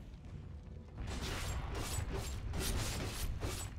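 Magic blasts and weapon clashes crackle in a fast fight.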